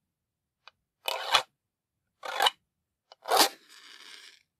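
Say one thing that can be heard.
Matches scrape hard against the rough strip of a matchbox.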